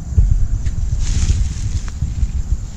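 A fishing rod swishes through the air as a line is cast.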